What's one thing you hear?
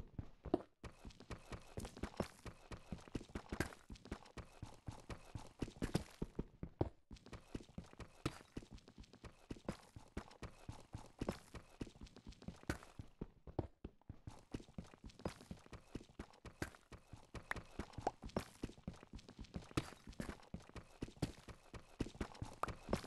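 A pickaxe chips at stone blocks with quick repeated taps.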